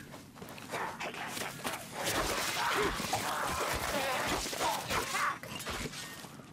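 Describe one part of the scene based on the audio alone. A blade hacks and slashes into creatures.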